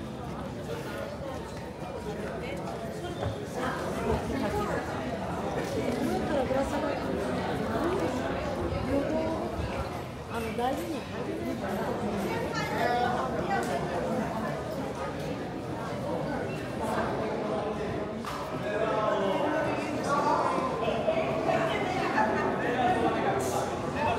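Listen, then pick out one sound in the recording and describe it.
A crowd of men and women chatters nearby.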